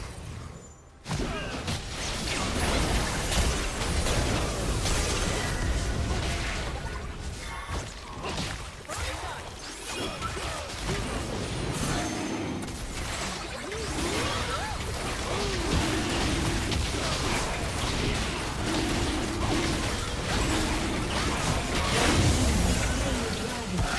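Magic blasts crackle and boom in a fast, chaotic fight.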